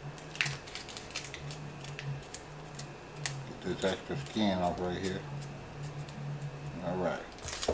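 Papery onion skin crackles as it is peeled.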